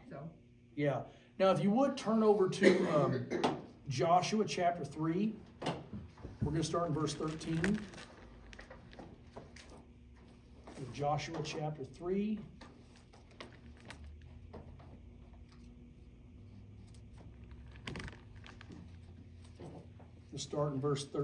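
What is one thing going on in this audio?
A middle-aged man speaks calmly and close by, pausing now and then.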